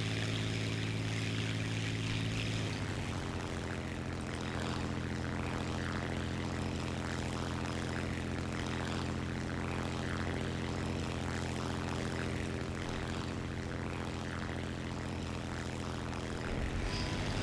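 Wind rushes past a plane.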